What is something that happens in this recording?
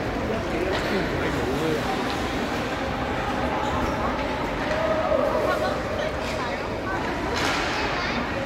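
A crowd chatters in a large echoing arena.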